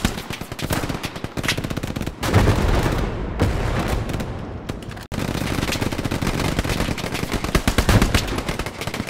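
Rapid gunfire rattles in bursts nearby.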